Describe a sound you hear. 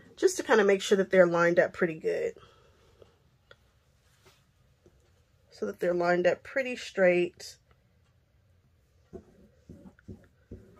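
Hands smooth and rustle fabric.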